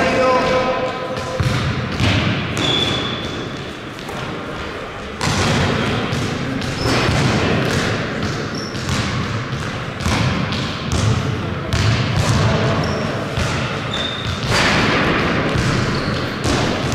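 A basketball bounces repeatedly on a hard court in a large echoing hall.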